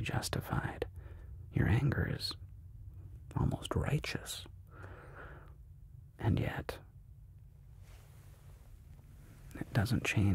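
A man speaks softly and slowly, close to a microphone, with long pauses.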